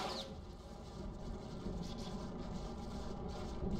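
Footsteps crunch softly on dry dirt.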